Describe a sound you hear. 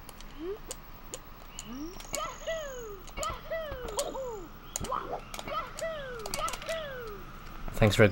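Cartoonish jump sound effects chirp in quick, repeated bursts.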